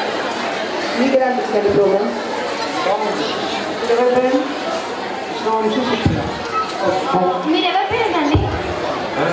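Nearby men and women talk over the crowd noise.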